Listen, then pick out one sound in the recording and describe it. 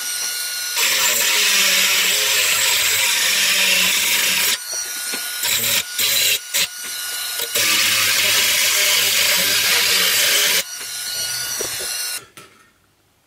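A belt sander grinds loudly against a metal keg, rising and falling in pitch as pressure changes.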